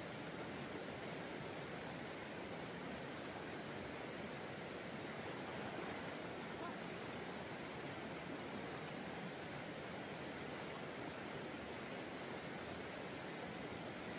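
Water splashes as a person wades and swims.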